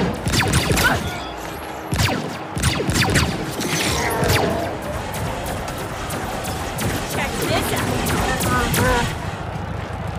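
Gunshots and blasts crack in rapid bursts.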